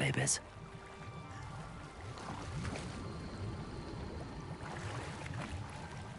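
Water churns and bubbles as a swimmer dives under.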